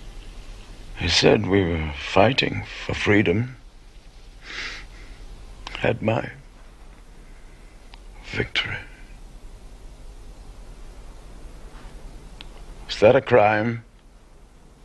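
An elderly man speaks nearby in a strained, anxious voice.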